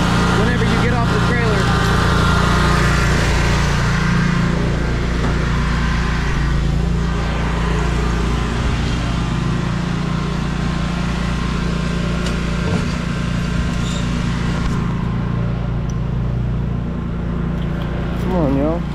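A mower engine hums steadily nearby.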